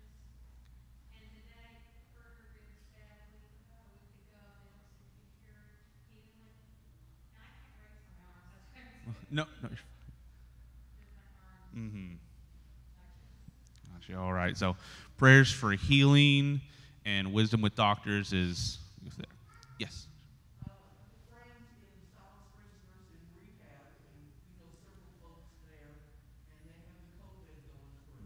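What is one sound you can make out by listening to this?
A young man speaks calmly into a microphone, heard through a loudspeaker in a large echoing room.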